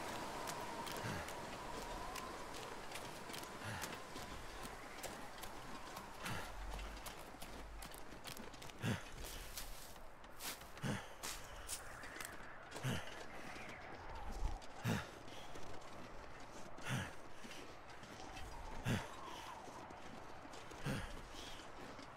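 Footsteps crunch slowly through snow.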